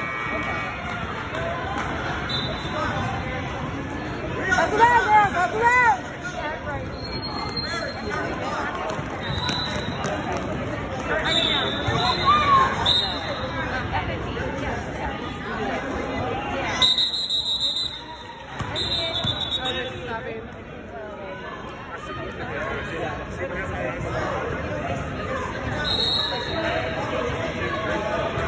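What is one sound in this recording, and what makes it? A crowd of adults and children cheers and chatters in a large echoing gym.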